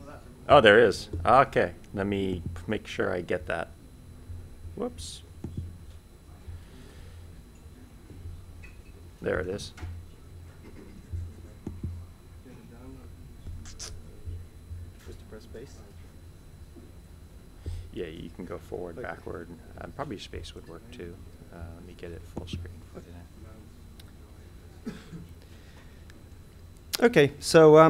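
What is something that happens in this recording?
A young man speaks into a microphone in short bursts.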